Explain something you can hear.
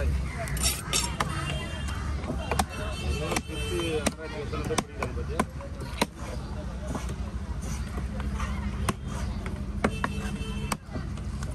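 A cleaver chops sharply into a wooden block, again and again.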